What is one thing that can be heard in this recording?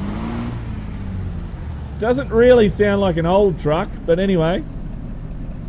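A truck engine idles with a low steady rumble.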